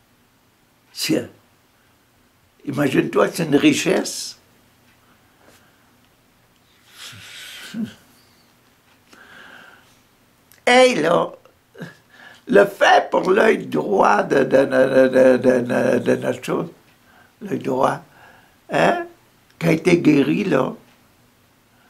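An elderly man talks calmly and close by, in short bursts with pauses.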